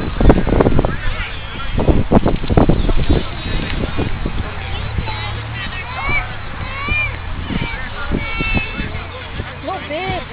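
Young children chatter and call out in high voices.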